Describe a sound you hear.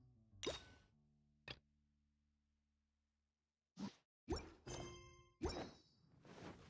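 Game menu chimes and clicks sound.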